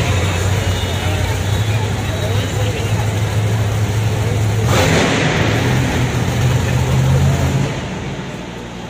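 A monster truck engine roars loudly nearby.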